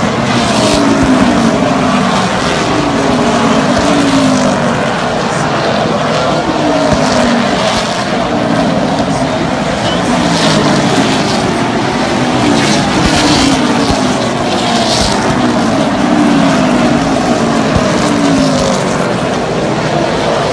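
Race car engines roar loudly around a track, rising and falling as cars pass close by.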